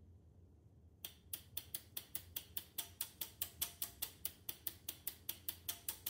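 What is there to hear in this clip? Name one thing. Relays click rapidly in a steady rhythm.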